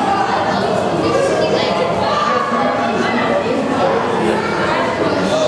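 Many children chatter and call out in an echoing hall.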